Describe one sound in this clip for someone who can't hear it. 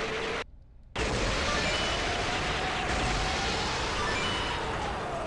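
Video game explosions boom.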